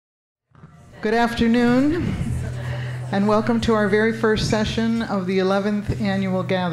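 A middle-aged woman speaks calmly into a microphone, heard through loudspeakers in a large room.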